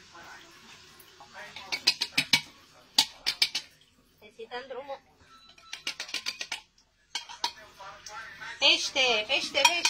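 A metal can lid clicks and scrapes as it is bent open.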